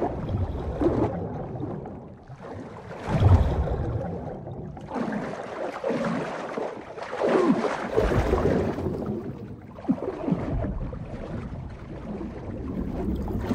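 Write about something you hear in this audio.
Water churns as a figure swims underwater.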